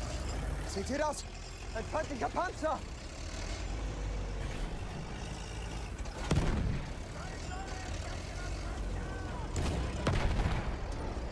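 Heavy gunfire booms in the distance.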